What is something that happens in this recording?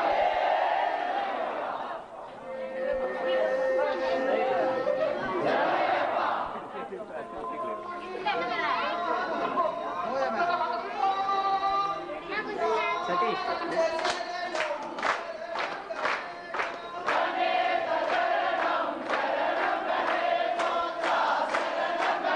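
A crowd of men chant together loudly.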